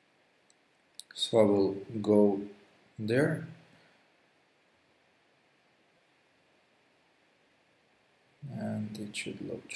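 A young man talks calmly into a close microphone, pausing between phrases.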